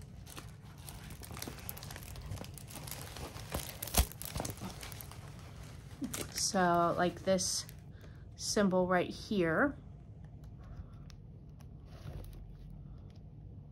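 A stiff sheet crinkles as it is lifted and folded.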